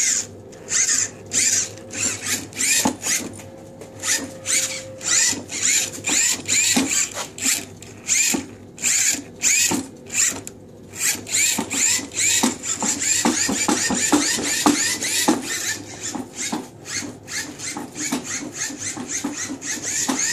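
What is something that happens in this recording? A small electric motor whirs and whines in short, repeated bursts.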